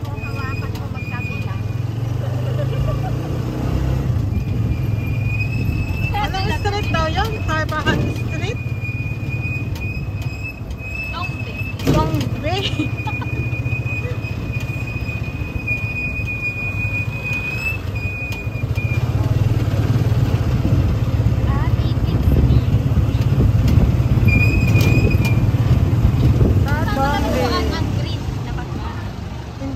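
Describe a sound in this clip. A motor tricycle engine rumbles steadily from close by while riding.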